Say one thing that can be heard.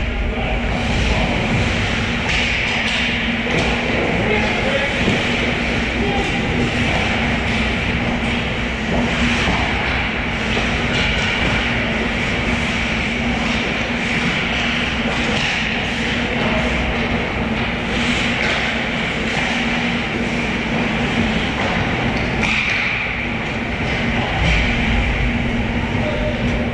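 Skate blades scrape and carve across ice in a large echoing rink.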